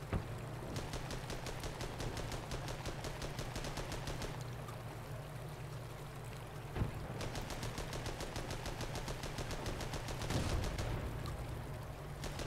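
An engine rumbles steadily.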